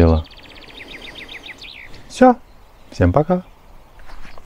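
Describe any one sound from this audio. A man speaks calmly, close by, outdoors.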